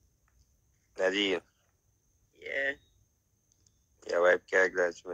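A woman speaks with animation, close by through a phone's microphone.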